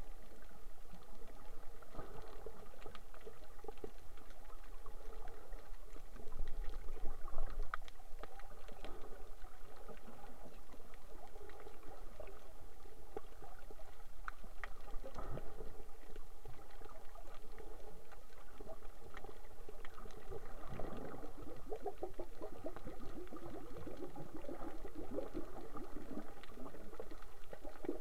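Water crackles and hisses, heard from underwater.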